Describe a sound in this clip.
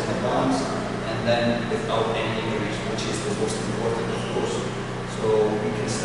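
A middle-aged man speaks calmly into a microphone in a slightly echoing room.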